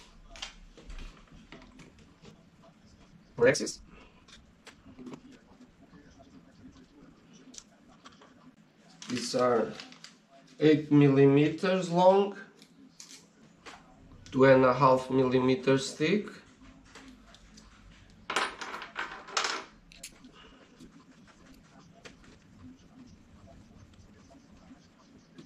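Small plastic parts click and tap as they are fitted together by hand.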